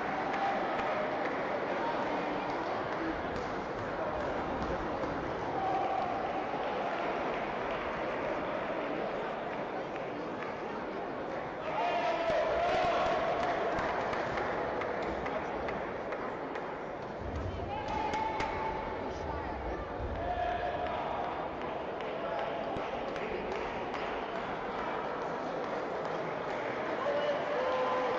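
Many voices murmur and echo in a large hall.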